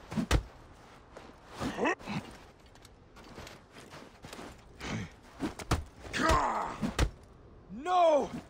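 Footsteps scuff across sand.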